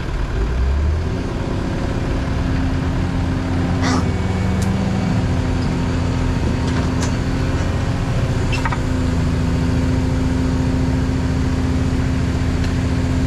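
Hydraulics whine as an excavator arm moves.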